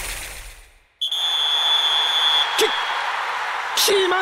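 A large stadium crowd cheers.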